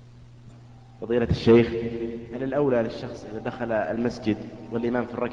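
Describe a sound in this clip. A man chants a prayer through a loudspeaker in a large echoing hall.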